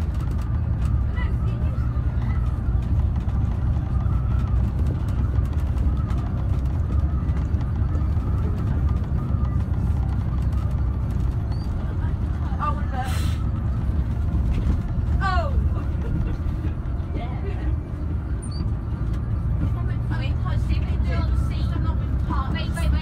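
The bus body rattles and creaks over the road.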